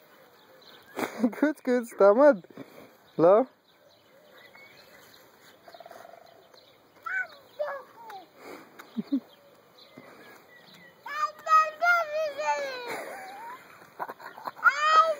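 A toddler squeals and babbles loudly nearby.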